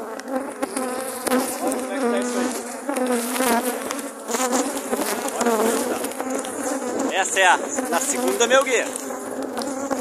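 Bees buzz loudly close by.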